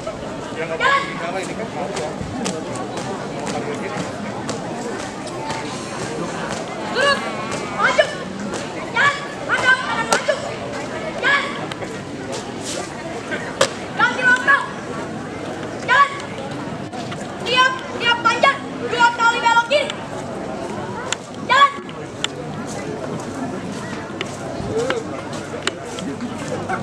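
Shoes stamp and tap on pavement in a marching rhythm.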